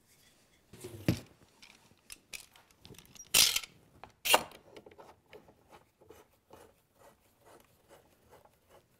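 Metal clamps click and ratchet as they are tightened.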